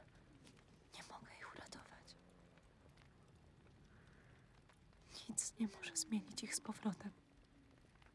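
A young woman speaks quietly and calmly, close by.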